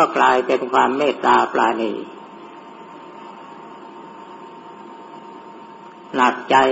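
An elderly man chants slowly in a steady voice.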